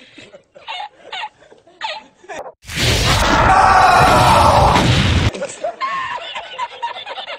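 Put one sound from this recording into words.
A middle-aged man laughs heartily.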